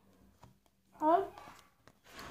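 A boy speaks briefly, close by.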